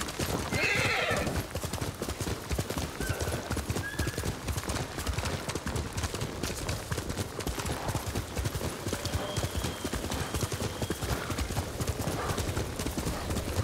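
A horse gallops quickly over grass, its hooves thudding in a steady rhythm.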